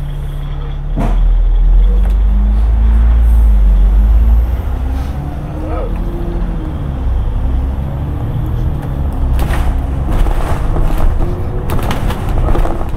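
A bus engine revs up and whines as the bus pulls away and drives on.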